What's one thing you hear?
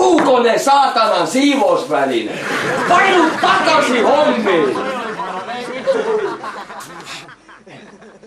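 Several young people talk and laugh loudly close by.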